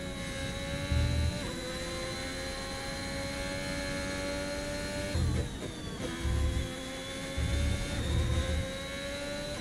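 Low thumps rumble as the car runs over kerbs.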